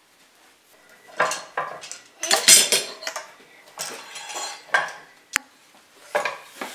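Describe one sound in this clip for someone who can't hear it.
Wooden boards knock and clatter on a workbench.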